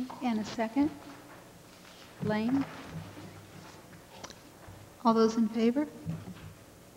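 A woman speaks short, brief replies through a microphone in an echoing hall.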